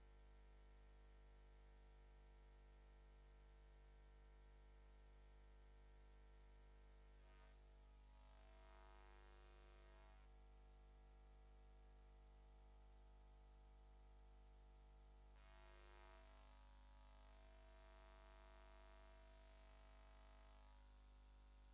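A children's choir sings.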